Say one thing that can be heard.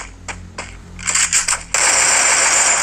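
A gun fires in a quick burst.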